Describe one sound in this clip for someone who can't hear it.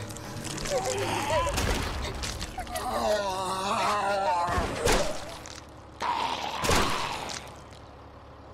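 A monster growls and snarls loudly.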